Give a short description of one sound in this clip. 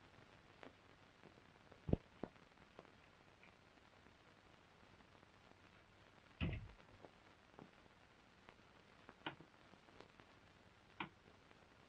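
A telephone receiver clunks onto its hook.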